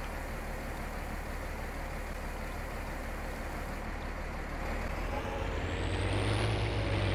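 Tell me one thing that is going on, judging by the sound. A tractor engine rumbles steadily and grows louder as it moves.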